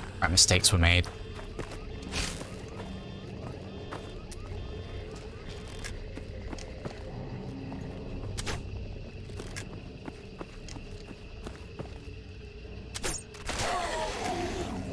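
Footsteps crunch slowly over leaves and twigs.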